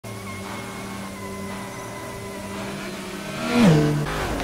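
A race car engine idles with a steady hum.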